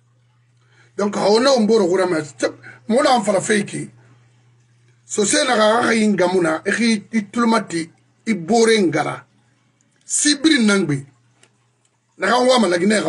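A middle-aged man speaks with animation into a microphone, close up.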